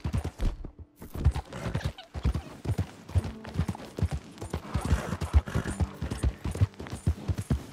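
Horse hooves pound rapidly on a dirt track.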